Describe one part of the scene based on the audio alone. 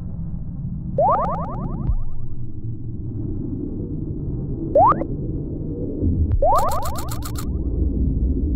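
Bright rising chimes sound as health is restored.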